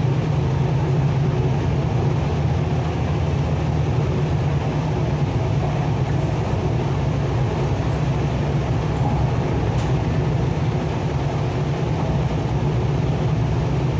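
An electric commuter train runs at speed, heard from inside the carriage with a steady low rumble.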